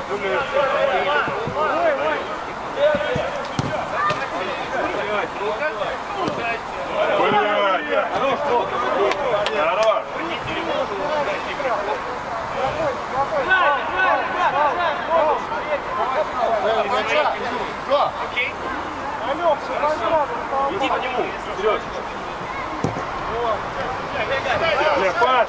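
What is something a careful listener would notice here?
Men shout and call out to each other across an open outdoor pitch.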